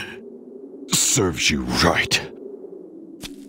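A man speaks in a low, scornful voice.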